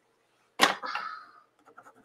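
A hand smooths a sheet of paper.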